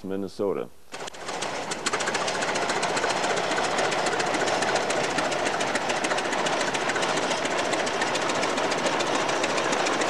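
A tractor engine chugs and rattles steadily outdoors.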